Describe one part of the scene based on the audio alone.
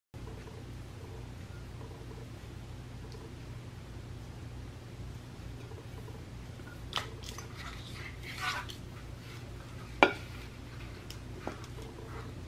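A cord rubs and rustles against a glass vase.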